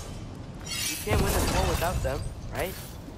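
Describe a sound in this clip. Rock crashes down and crumbles.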